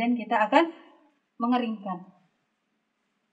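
A woman speaks calmly and briefly, close by.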